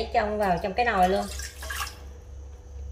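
Water pours into a metal pot.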